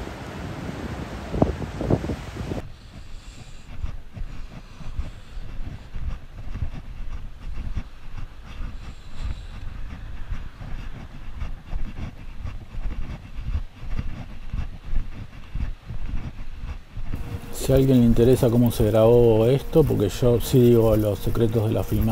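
Wind rumbles and buffets against the microphone outdoors.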